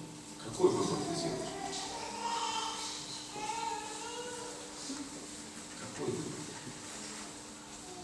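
A younger man speaks into a microphone.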